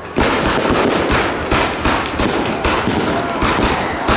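Firework rockets whoosh and hiss upward.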